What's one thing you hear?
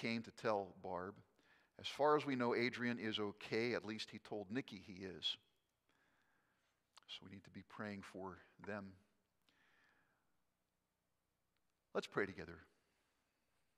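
An older man speaks calmly into a microphone in an echoing room, with pauses.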